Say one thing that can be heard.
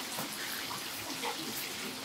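Hot oil sizzles in a wok.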